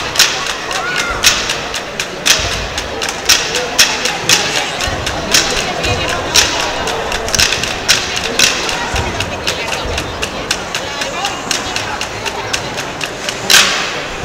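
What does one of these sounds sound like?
Sticks tap sharply on a stone floor in a steady beat.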